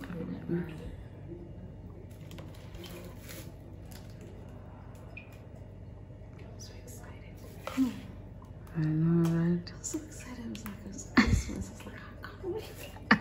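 A middle-aged woman talks and laughs close by.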